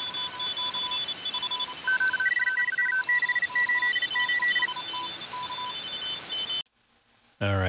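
Morse code tones beep rapidly from a radio.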